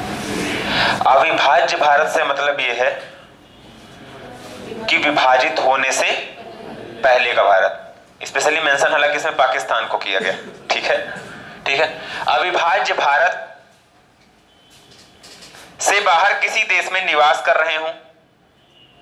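A young man speaks with animation through a close microphone.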